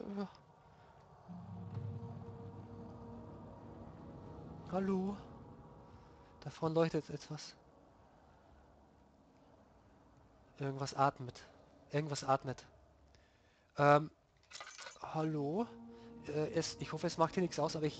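A young man talks close to a microphone in short, animated bursts with pauses between them.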